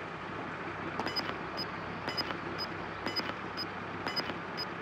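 A handheld radar device beeps in quick repeated pulses.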